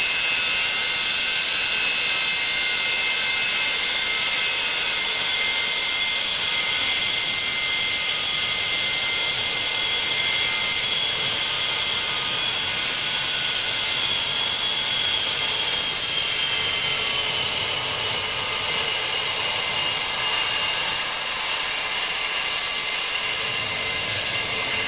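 The turbofan engines of an Ilyushin Il-76 jet freighter whine as it taxis past.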